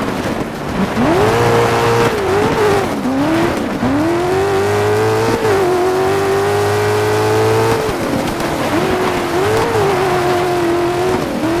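A racing engine revs high, its pitch rising and dropping with each gear change.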